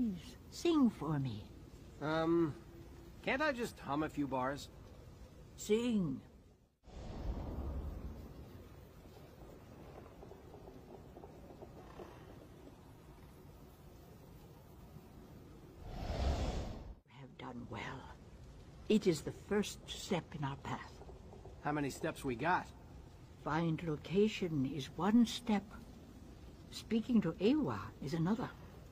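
A woman speaks calmly and solemnly, close by.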